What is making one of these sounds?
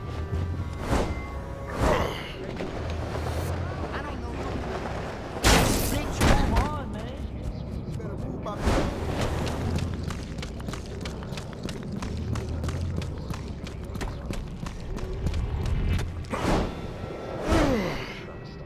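A game character lands with heavy thuds and whooshes.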